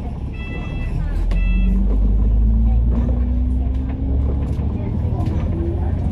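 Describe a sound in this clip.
A bus engine revs up with a rising whine.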